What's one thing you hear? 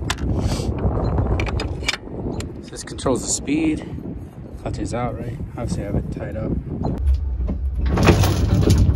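A windlass ratchet clicks as a handle is cranked.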